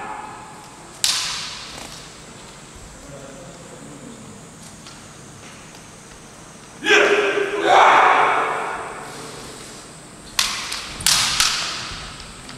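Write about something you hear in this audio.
Bamboo swords strike with sharp cracks.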